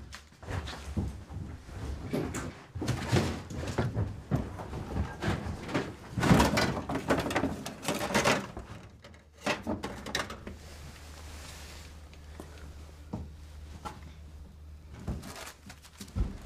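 Drawers and objects knock and scrape as someone rummages.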